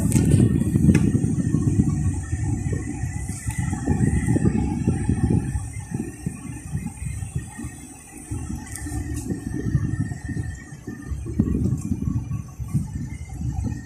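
Wind rumbles against the car as it moves.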